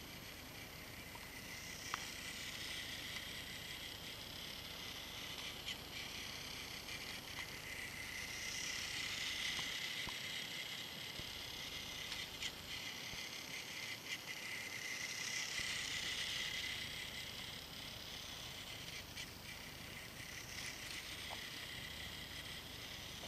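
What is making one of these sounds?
A small battery toy train whirs steadily, rising and falling as it circles.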